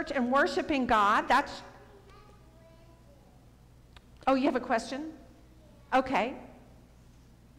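A woman speaks through a microphone in an echoing room, in short bursts with pauses.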